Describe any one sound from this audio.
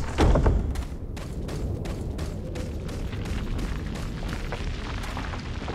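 Footsteps crunch steadily on sandy ground.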